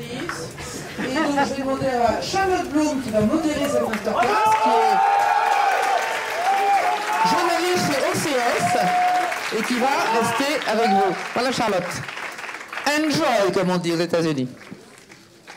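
A woman speaks through a microphone that echoes in a large hall.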